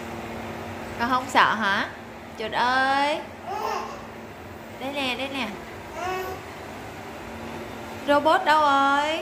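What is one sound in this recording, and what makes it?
A baby squeals and babbles loudly up close.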